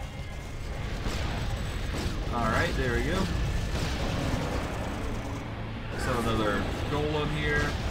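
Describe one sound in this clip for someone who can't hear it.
Fiery magic blasts whoosh and crackle.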